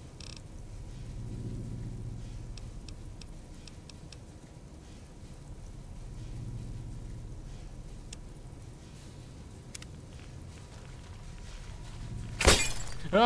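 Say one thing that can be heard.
A young man speaks quietly into a nearby microphone.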